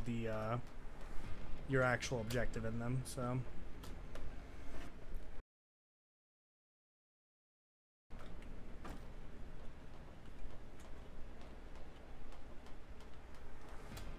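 Footsteps thud on metal containers.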